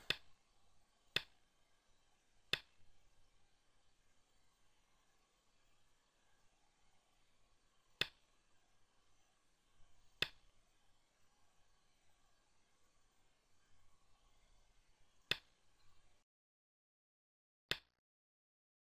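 A game stone clicks sharply onto a wooden board, now and then.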